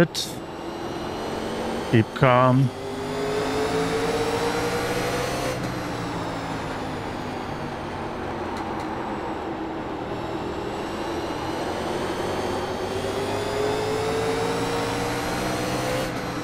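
A race car engine roars steadily, rising in pitch as it speeds up.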